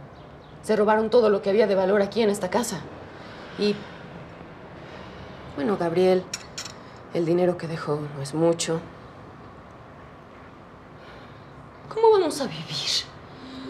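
A woman speaks close by in a tense, emotional voice.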